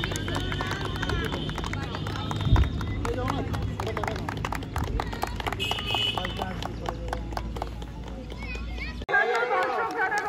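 A crowd of young men and women chatters and calls out nearby outdoors.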